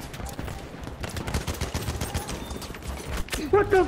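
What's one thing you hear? Rifle shots crack in quick succession.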